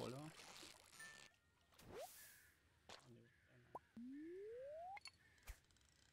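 A video game plays short beeps and a rising tone.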